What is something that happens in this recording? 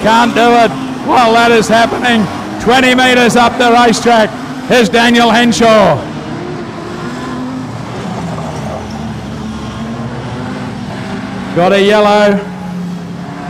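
Race car engines rev loudly, rising and falling in pitch.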